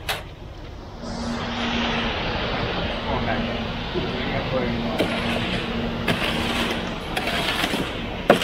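Wet concrete slides and hisses down a metal chute.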